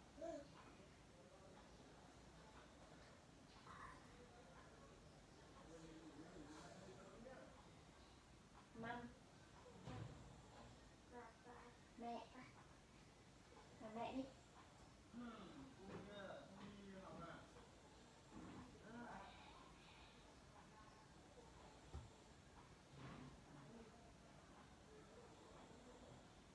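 A television plays across the room.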